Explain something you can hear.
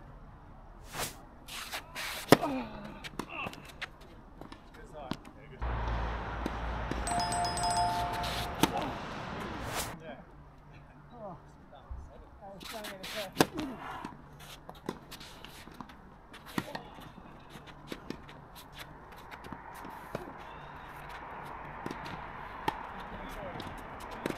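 A tennis racket strikes a ball with sharp pops.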